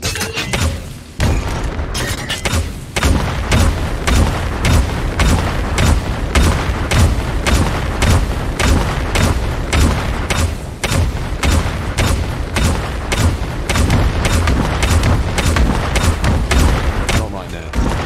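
Magic spells burst and crackle in quick succession.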